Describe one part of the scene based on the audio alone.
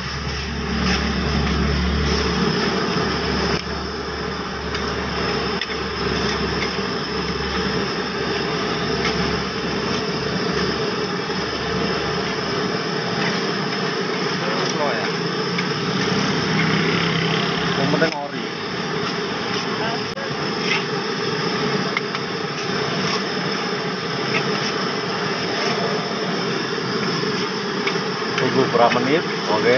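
Noodles sizzle loudly in a hot wok.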